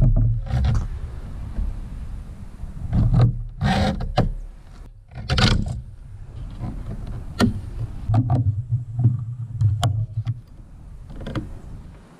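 A hacksaw cuts back and forth through a rubber strip.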